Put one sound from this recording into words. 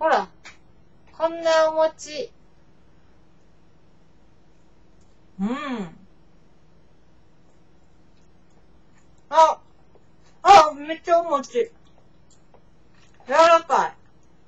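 A young woman speaks close by in short, lively bursts.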